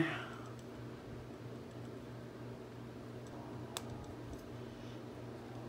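Metal parts click and clink as a hub is fitted onto an axle.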